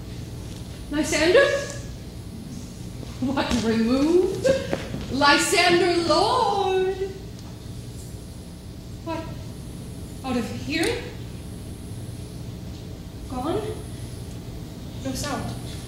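A young woman sings in short, gliding phrases in a large hall.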